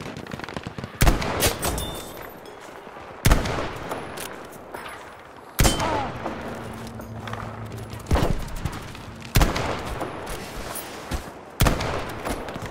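A rifle fires loud, sharp single shots.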